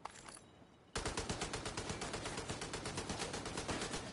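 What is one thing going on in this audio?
Footsteps crunch steadily on gravel.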